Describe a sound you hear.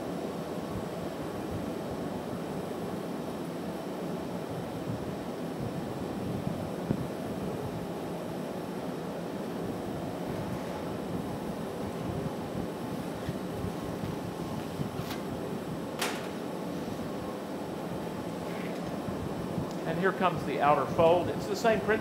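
A furnace roars steadily.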